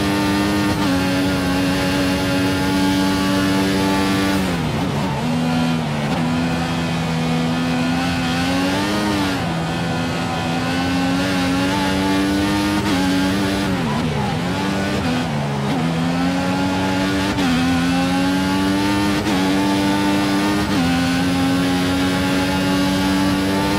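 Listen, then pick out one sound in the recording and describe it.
A racing car engine screams at high revs, dropping in pitch as it brakes and rising again as it accelerates through the gears.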